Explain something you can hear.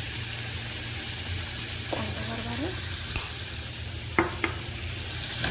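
A spoon clinks against a metal pot.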